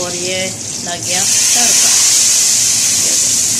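Hot oil hisses loudly as it is poured into a pot of liquid.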